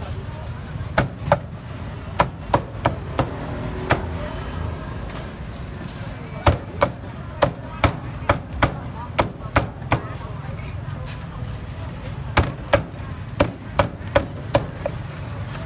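A cleaver chops through roast duck with sharp thuds.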